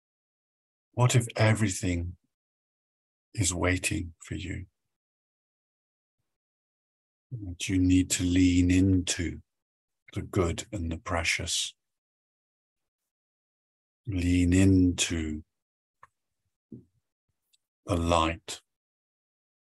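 A middle-aged man speaks calmly in short phrases, close to the microphone over an online call.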